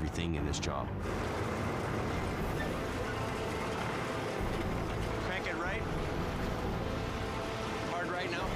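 A truck engine idles with a low rumble.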